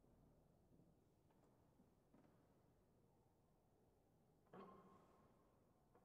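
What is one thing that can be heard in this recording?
A grand piano plays softly in a large echoing hall.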